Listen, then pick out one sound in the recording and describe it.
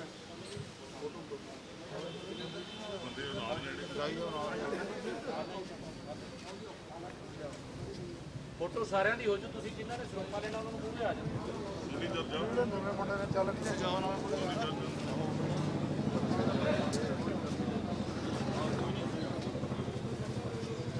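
Several men talk and call out at once nearby, outdoors.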